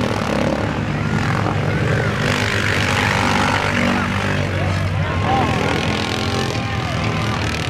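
Several quad bike engines roar and rev loudly.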